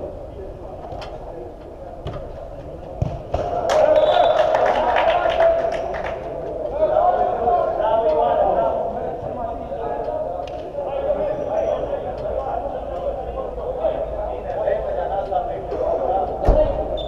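A football is kicked with sharp thuds that echo in a large dome.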